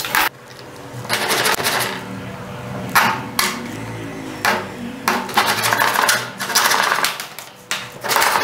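A hacksaw cuts back and forth through plastic.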